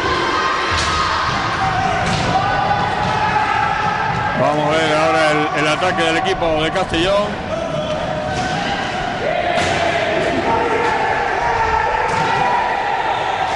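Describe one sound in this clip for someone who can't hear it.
Roller skates roll and scrape across a wooden floor in a large echoing hall.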